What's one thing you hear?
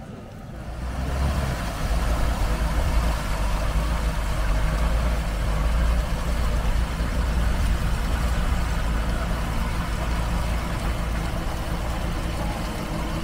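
An engine idles low and steady.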